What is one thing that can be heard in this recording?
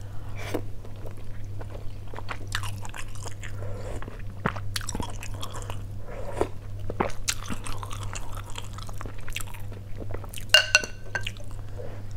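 Chopsticks and a spoon clink against a glass bowl.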